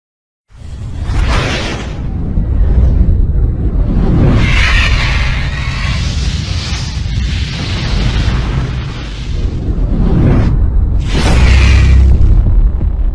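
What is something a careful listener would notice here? Flames roar and whoosh in loud bursts.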